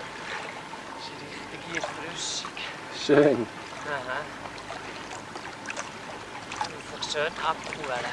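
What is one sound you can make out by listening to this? Water splashes gently as a man swims.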